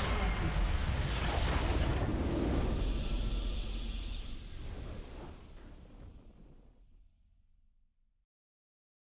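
A triumphant fanfare swells and fades away.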